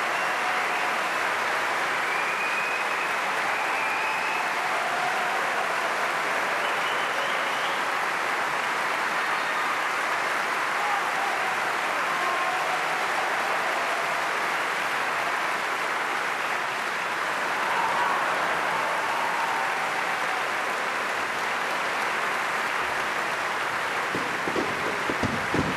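A large audience applauds loudly and steadily in a big hall.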